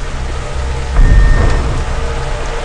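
A game alert chimes once.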